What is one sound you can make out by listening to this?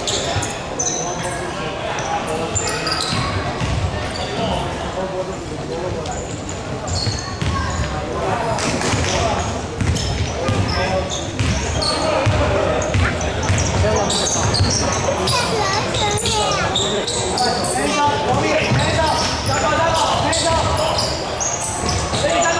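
Young players shout and call out to each other.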